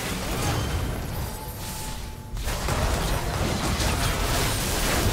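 Game spell effects whoosh and crackle during a battle.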